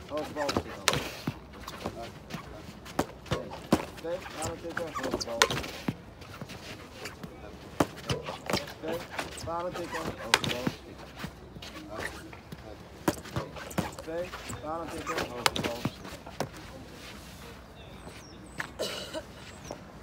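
A hockey stick strikes a ball with sharp cracks, again and again.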